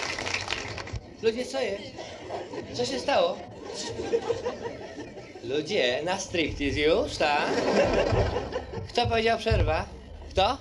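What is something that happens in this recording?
A middle-aged man speaks calmly and with a smile, close to a microphone.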